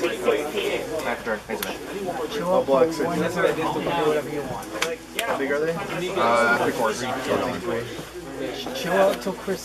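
Playing cards slide and tap softly on a cloth mat.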